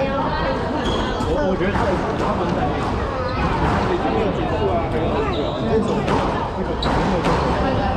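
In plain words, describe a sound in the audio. A squash ball smacks sharply off the walls with an echo.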